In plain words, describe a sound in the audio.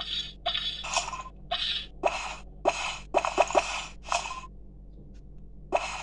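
Cheerful game sound effects play in quick, bright bursts.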